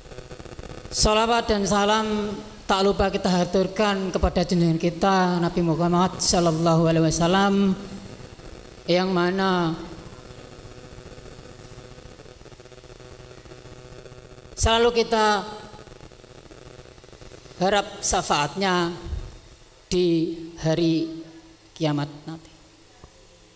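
A man speaks through a microphone, with pauses between phrases.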